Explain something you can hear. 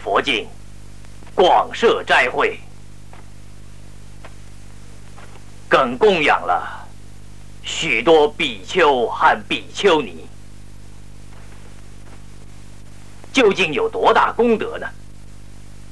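A man speaks in a slow, declaiming voice, with long pauses.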